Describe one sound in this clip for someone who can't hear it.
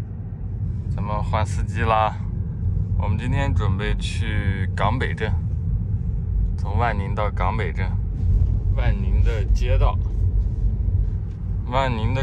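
A young woman speaks brightly close by inside a car.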